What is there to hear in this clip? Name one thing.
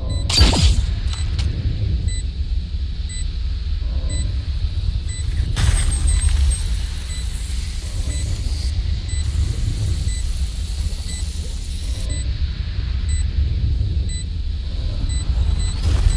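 A deep, steady rumble drones throughout.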